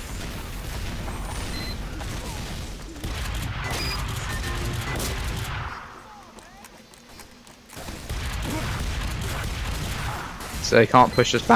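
Gunshots and explosions boom.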